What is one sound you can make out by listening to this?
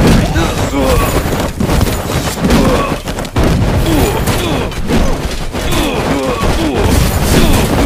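Swords clash and hack in a noisy battle.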